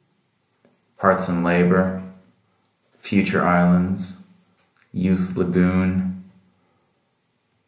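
A middle-aged man speaks calmly and close by, in short phrases.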